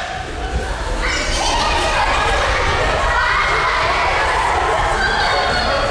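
Children chatter and shout all around.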